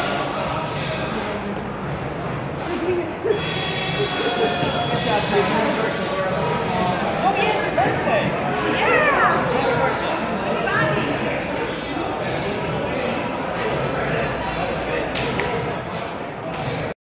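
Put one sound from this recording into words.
Many people talk and chatter in a large echoing room.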